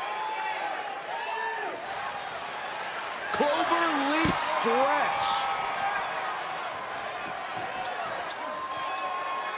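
A crowd cheers and whistles in a large arena.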